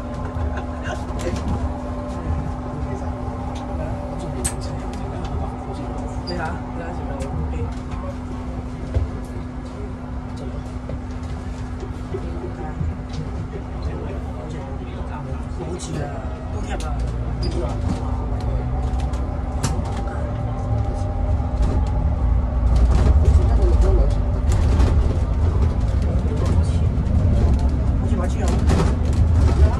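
A bus engine hums steadily and grows louder as the bus speeds up.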